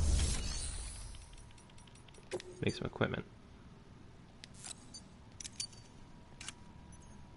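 Soft electronic menu clicks and chimes sound as options are selected.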